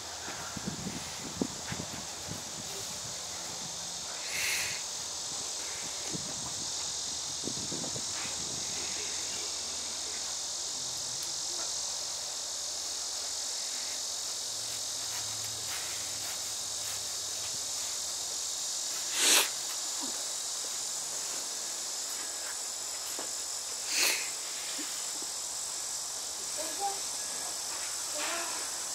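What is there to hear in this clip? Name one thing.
Fabric of a flag rustles softly as it is folded.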